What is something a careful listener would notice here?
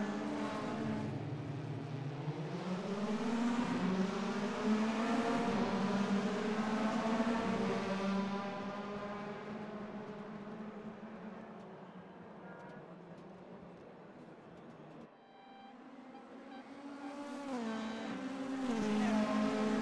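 Racing car engines roar and whine as the cars speed past.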